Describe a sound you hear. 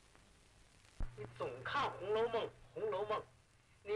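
An elderly man speaks with emotion, close by.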